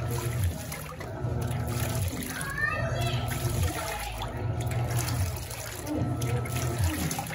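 Water splashes and swirls in a washing machine drum.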